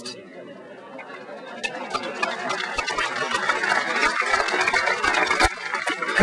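A crowd applauds, clapping hands loudly.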